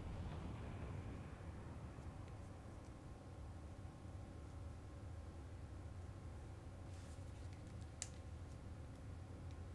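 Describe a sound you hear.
A huge explosion roars with a deep, steady rumble.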